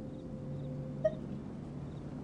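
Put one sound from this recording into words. A soft chime sounds as a menu option is picked.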